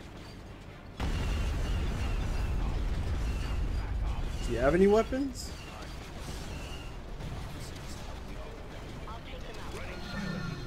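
Heavy cannon fire booms and rumbles in bursts.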